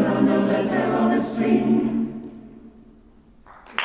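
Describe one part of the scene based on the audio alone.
A choir sings a sustained final chord that rings out and fades in a large hall.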